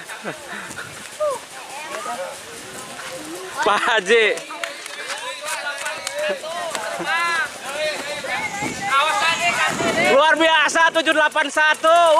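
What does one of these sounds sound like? A crowd of men and children shouts and cheers excitedly outdoors.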